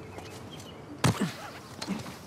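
A climber drops from a stone wall and lands with a heavy thud.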